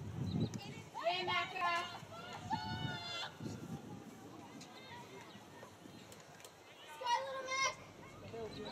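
Teenage girls shout calls to each other outdoors across an open field.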